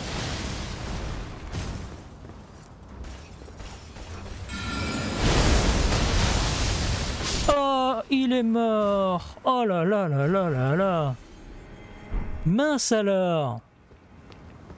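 Footsteps scrape over rock.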